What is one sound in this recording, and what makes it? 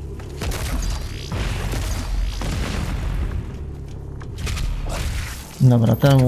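Gunshots boom repeatedly with heavy thuds.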